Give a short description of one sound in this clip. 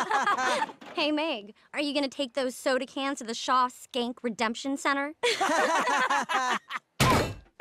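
Young women laugh loudly and shrilly together.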